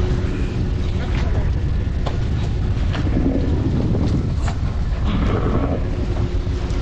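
Wind blows hard against a microphone outdoors.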